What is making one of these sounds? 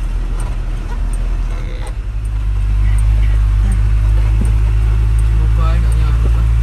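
Music with a heavy bass beat plays loudly through speakers.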